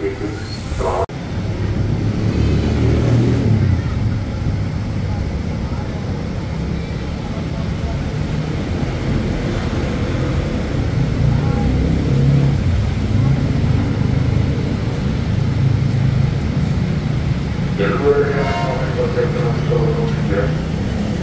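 An electric commuter train rolls slowly along the rails.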